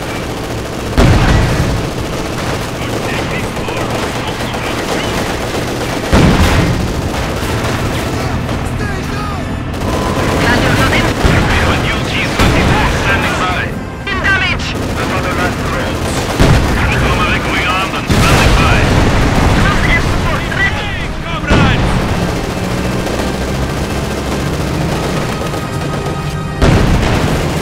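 Explosions boom loudly, one after another.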